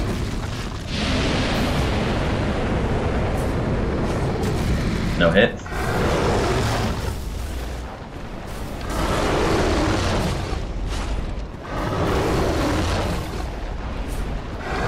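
A huge beast roars and rumbles loudly.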